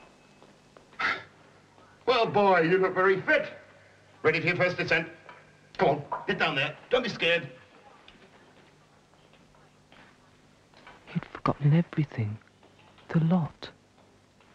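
A young man speaks quietly nearby.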